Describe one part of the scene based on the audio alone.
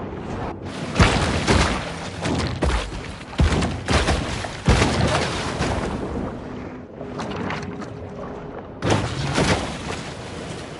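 Water splashes in loud bursts.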